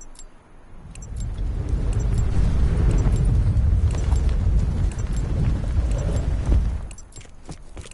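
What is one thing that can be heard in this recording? Wind roars loudly past a falling parachutist, then stops abruptly.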